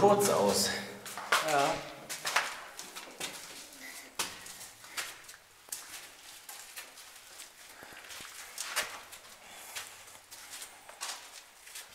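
Footsteps scrape on a gritty concrete floor.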